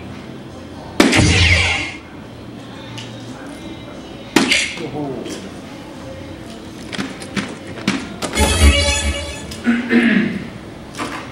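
An electronic dartboard plays short game sound effects after hits.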